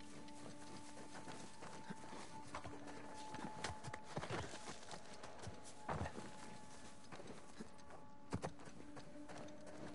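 Footsteps thud and scrape on stone.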